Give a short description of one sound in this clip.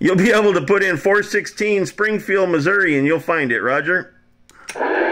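A man's voice talks through a crackly radio loudspeaker.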